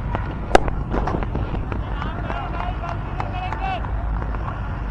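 Players shout across the field in the distance.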